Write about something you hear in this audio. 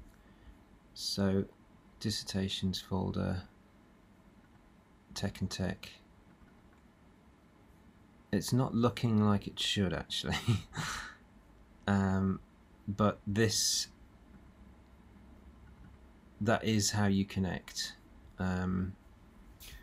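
A man speaks calmly into a close microphone, in short bursts with pauses.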